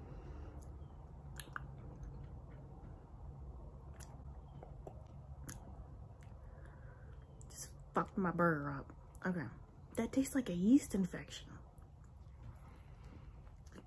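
A young woman chews and munches food loudly.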